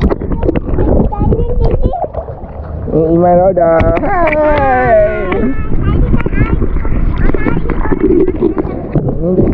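Water splashes and laps close by.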